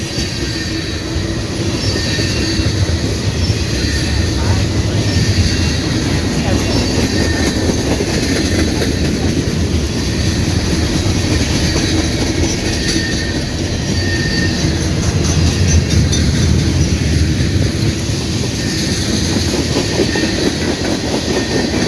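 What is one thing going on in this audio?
Freight cars rumble and clatter steadily along the rails close by.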